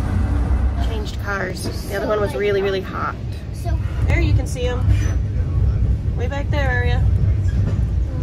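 A woman talks close by in a lively way.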